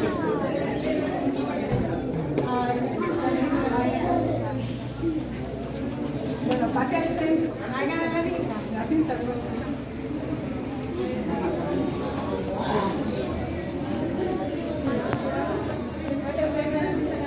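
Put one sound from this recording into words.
A crowd of children and adults chatter nearby in a busy, echoing hall.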